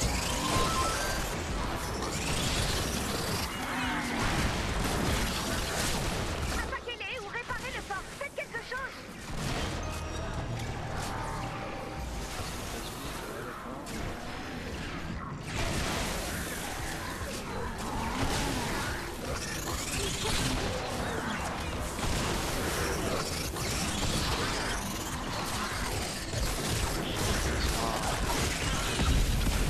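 Weapons swing and strike enemies with sharp hits.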